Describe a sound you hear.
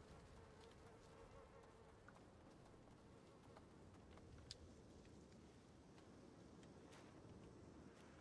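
Small footsteps pad softly over leaves.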